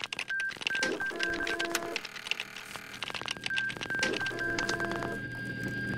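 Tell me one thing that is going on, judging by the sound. Short electronic beeps tick rapidly as text types out.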